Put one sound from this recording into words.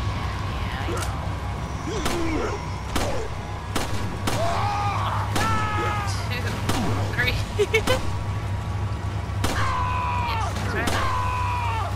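A pistol fires single shots, one after another.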